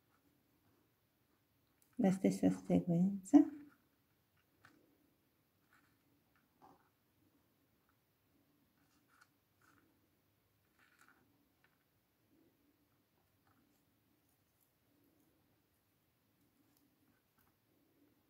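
Glass seed beads click faintly as fingers pick them up.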